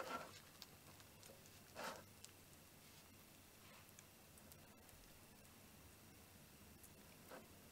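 A metal spoon scrapes soft cream on a plate.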